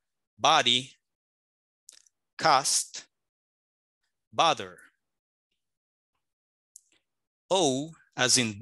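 A man pronounces single words slowly and clearly over an online call, with pauses between them.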